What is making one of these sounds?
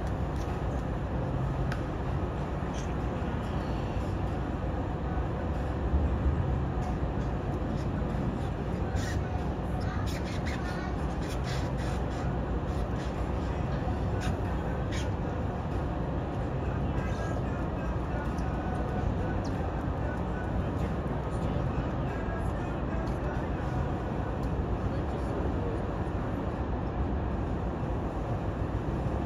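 Tugboat diesel engines rumble in the distance.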